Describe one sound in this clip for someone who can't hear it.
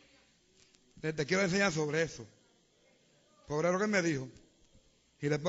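An elderly man preaches with animation, in a raised voice.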